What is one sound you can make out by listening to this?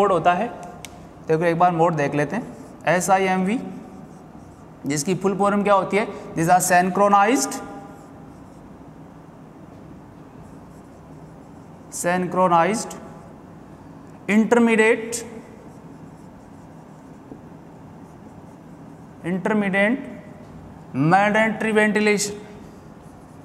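A man speaks calmly in short phrases, like a teacher explaining.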